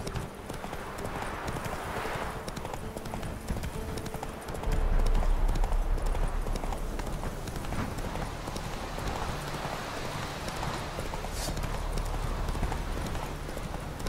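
Footsteps run quickly through grass and undergrowth.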